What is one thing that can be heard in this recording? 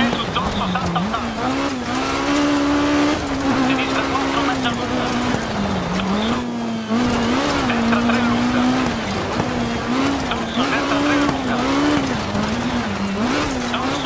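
Tyres crunch and rumble over gravel.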